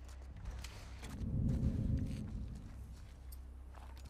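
Tall grass rustles as someone pushes through it.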